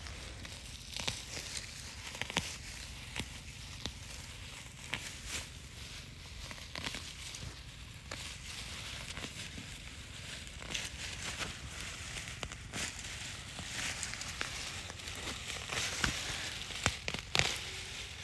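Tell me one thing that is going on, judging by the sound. Dry grass rustles and crackles under a hand.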